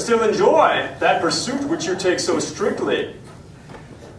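A man speaks loudly with animation in a roomy hall.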